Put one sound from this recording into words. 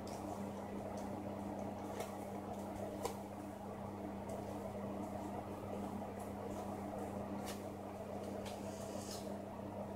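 Playing cards are laid softly onto a cloth.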